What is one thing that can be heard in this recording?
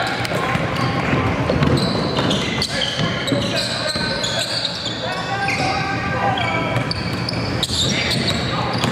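Young players shout to each other across the court.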